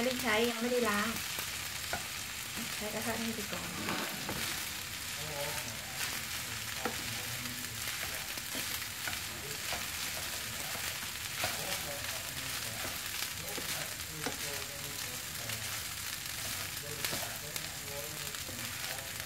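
Rice sizzles softly in a hot pan.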